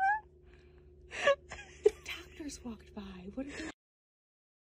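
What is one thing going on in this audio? A young woman gasps and screams in fright.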